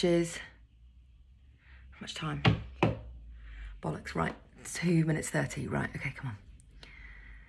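A woman talks close up, calmly and in bursts.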